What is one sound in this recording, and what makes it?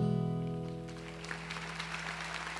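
A guitar chord rings out and fades.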